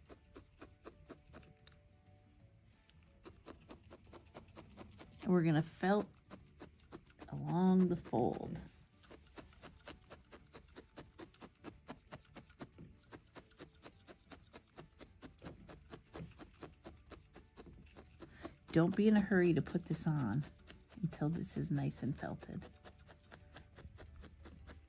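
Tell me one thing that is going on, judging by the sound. A felting needle stabs rapidly into wool with soft, quick taps.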